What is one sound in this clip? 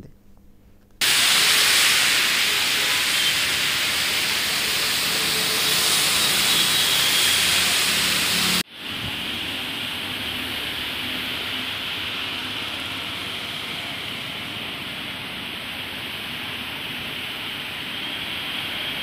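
Heavy rain pours steadily onto a wet road.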